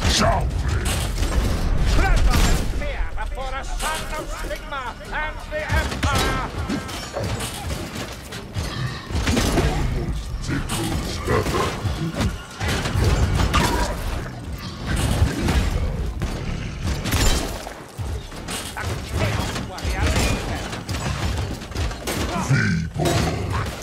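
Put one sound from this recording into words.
A gun fires loud, rapid shots.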